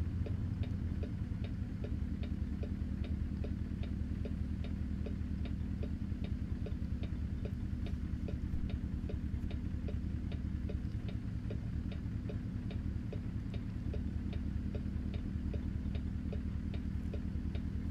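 A heavy truck engine idles with a deep, steady rumble.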